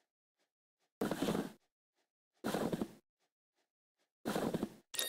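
Short game sound effects pop as tiles flip into place.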